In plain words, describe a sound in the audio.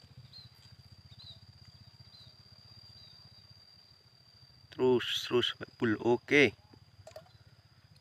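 Liquid trickles from a small bottle into a bucket of water.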